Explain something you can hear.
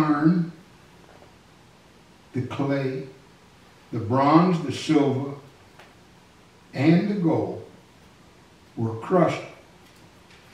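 An elderly man speaks slowly into a microphone, in short phrases with pauses.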